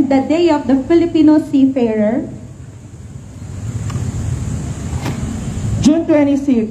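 A young woman speaks calmly into a microphone, heard through a loudspeaker.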